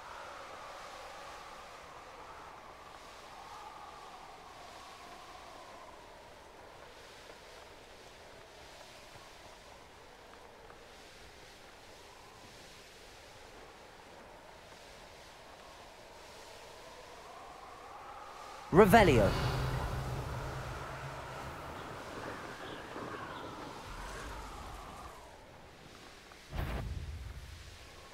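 Wind rushes steadily past while flying.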